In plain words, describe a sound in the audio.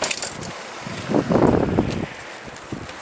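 Wind rushes past a moving bicycle.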